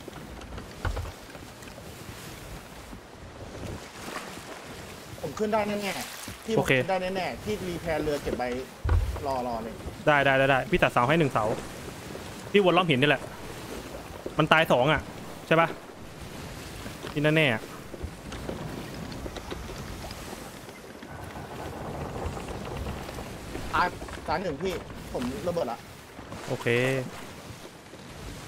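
Rough sea waves churn and splash steadily.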